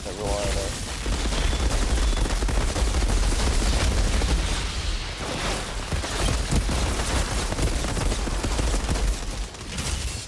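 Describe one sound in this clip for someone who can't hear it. Heavy blasts boom with a deep rumble.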